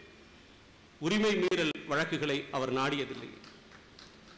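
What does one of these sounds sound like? A man speaks forcefully into a microphone, with a slight echo.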